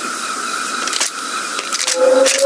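A rifle's mechanism clicks and clacks as it is reloaded.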